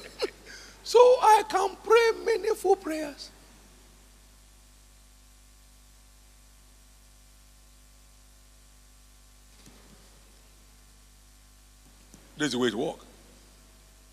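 A man speaks with animation into a microphone, heard through loudspeakers in a large hall, with long pauses.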